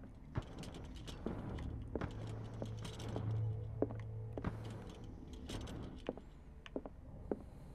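A metal lantern creaks and rattles as it swings.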